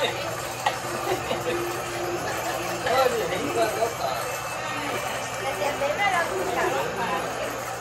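Young women talk nearby.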